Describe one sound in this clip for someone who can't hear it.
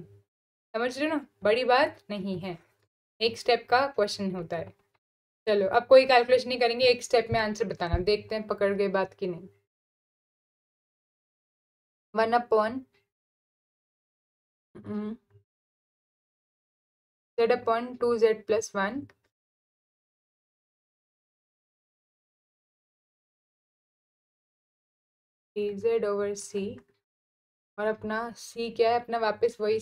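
A young woman speaks calmly into a close microphone, in bursts with pauses.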